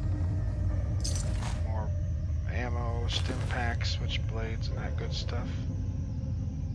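A man talks casually into a microphone, close by.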